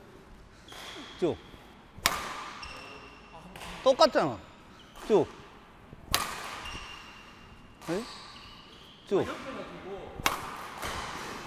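A badminton racket strikes a shuttlecock with sharp, crisp pops.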